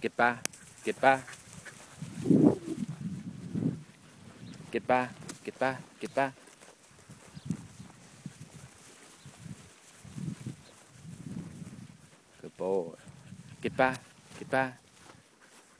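Sheep bleat close by, again and again.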